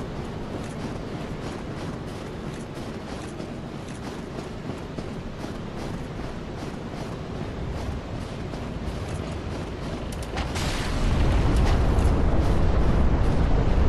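Armoured footsteps crunch quickly over snow.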